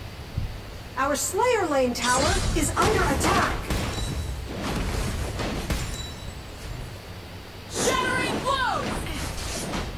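A young woman speaks quietly into a microphone.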